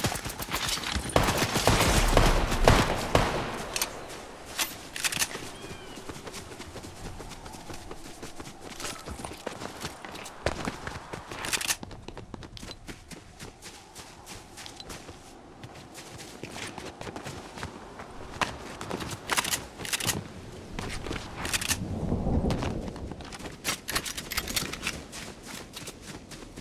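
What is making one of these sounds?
Quick footsteps patter over grass.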